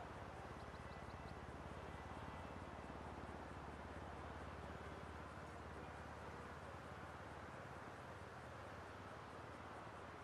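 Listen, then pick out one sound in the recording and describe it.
Traffic hums steadily on a distant highway.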